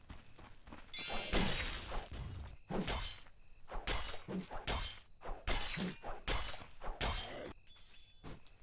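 Fighting sound effects burst and clash in quick succession.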